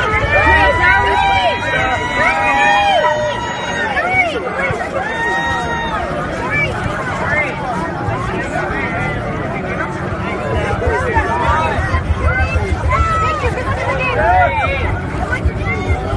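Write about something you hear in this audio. A crowd of excited children and teenagers shouts and screams close by.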